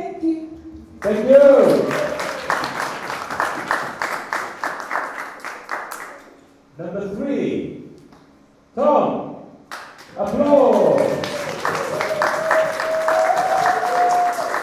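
An audience cheers and whoops.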